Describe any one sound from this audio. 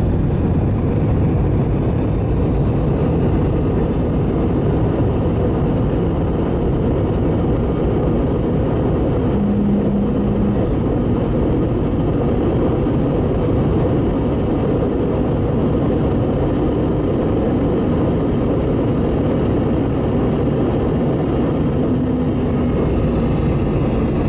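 The wheels of an aircraft rumble over the runway.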